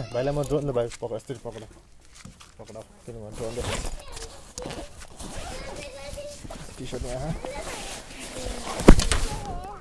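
A bag rustles and its zipper rasps.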